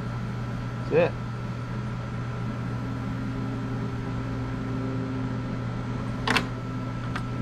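Small metal parts click as they are handled.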